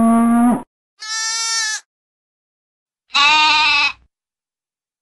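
A young goat bleats.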